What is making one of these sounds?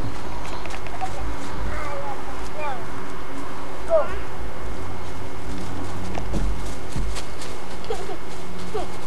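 Young children squeal and shout close by outdoors.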